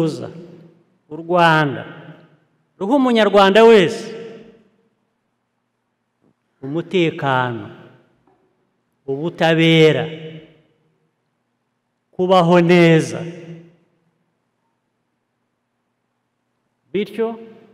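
A middle-aged man gives a slow, forceful speech through a microphone, pausing between phrases.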